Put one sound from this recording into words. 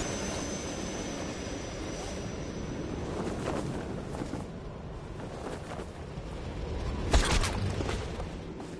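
Wind rushes steadily past during a fall through the air.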